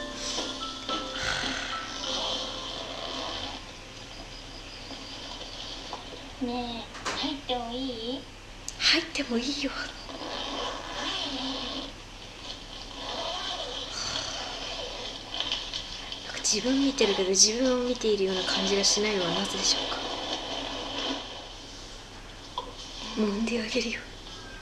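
A young woman giggles.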